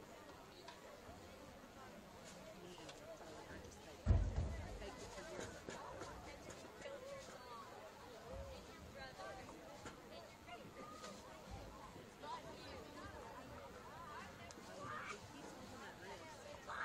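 A crowd of young players and spectators chatters and calls out outdoors.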